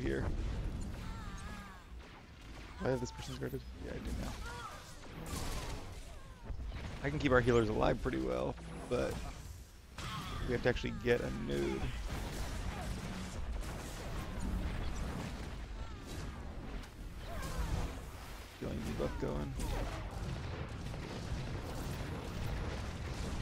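Laser blasts and weapon impacts crackle in a fight.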